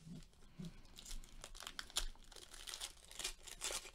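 A foil wrapper tears open.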